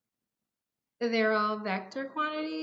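A woman speaks slowly and clearly into a close microphone.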